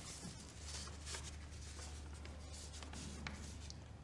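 Paper rustles as a drawing is unfolded and handled.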